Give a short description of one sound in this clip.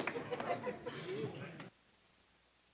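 A crowd of men and women chat together.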